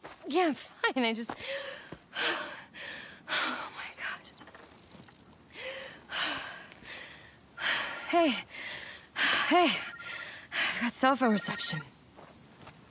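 A young woman speaks with animation, close by.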